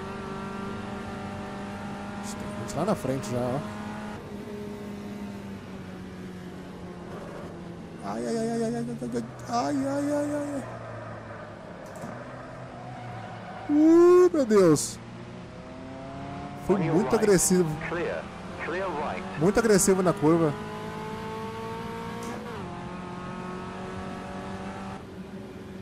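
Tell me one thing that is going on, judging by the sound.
A racing car engine drones steadily and shifts pitch as it accelerates and slows.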